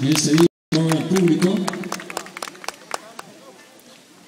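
An audience claps in scattered bursts.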